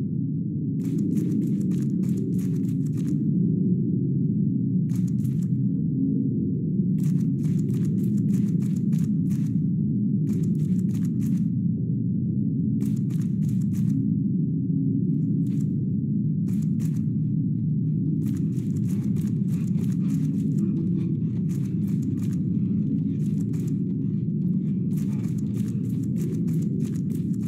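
Footsteps tap quickly on a hard floor in short bursts.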